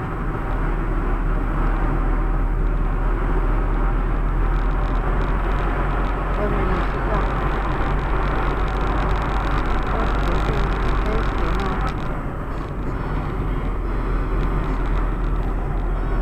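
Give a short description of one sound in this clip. Tyres roll on asphalt with a steady rumble.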